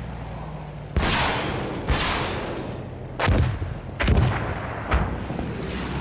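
A rifle fires several loud shots that echo away.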